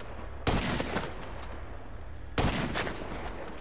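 A sniper rifle fires two sharp shots.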